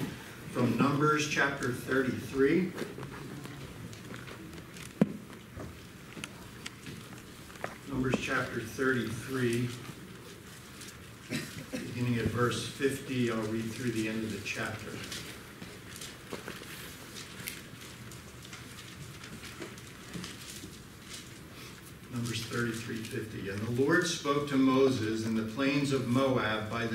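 A middle-aged man reads aloud calmly through a microphone, with pauses, in an echoing room.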